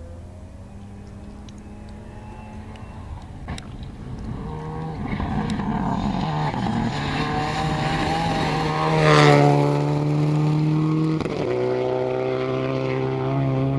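A rally car engine roars at high revs, growing louder as it approaches.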